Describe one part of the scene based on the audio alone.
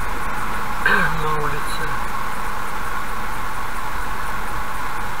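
Tyres hiss steadily on a wet road.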